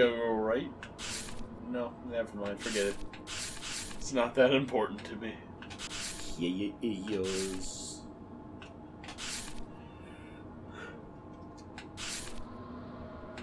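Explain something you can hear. Book pages flip with short, soft swishes.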